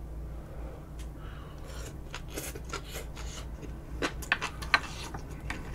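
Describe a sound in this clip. A woman chews food noisily with wet smacking sounds close to a microphone.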